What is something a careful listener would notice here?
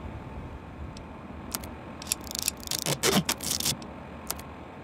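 Short electronic clicks and beeps sound as menu items are selected.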